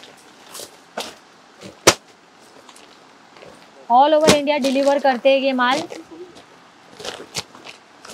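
Plastic garment bags rustle and crinkle as they are handled.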